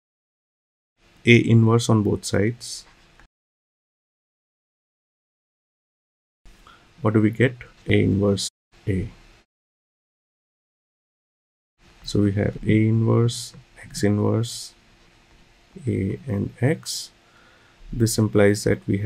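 A middle-aged man speaks calmly into a close microphone, explaining in pauses.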